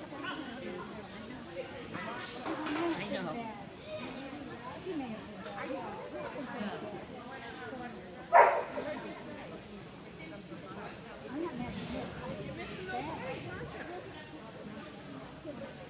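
Adults talk in the distance in a large echoing hall.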